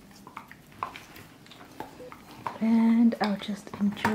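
A dog gnaws and crunches on a bone close by.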